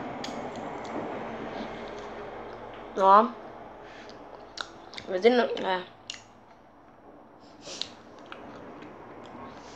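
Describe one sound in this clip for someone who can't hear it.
A young boy chews food with his mouth full.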